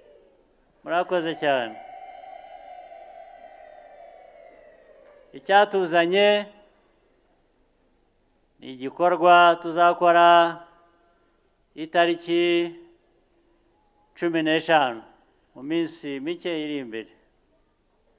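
A man speaks with animation into a microphone, heard through loudspeakers, in short bursts with pauses.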